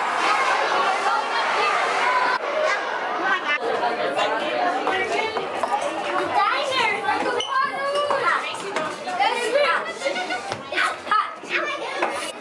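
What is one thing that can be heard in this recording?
Young children chatter and call out nearby in a large echoing hall.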